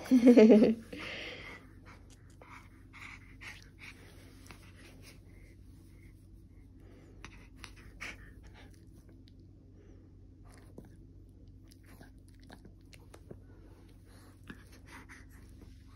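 A hand rubs a dog's fur with a soft rustling.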